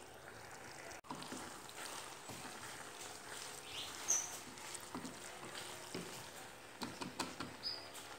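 A spatula stirs pasta in a metal pot with soft squelching scrapes.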